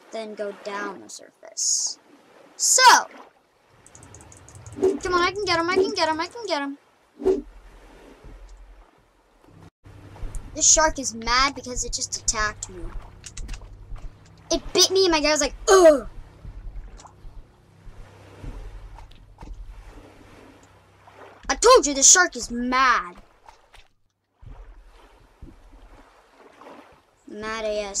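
Small waves lap gently at a sandy shore.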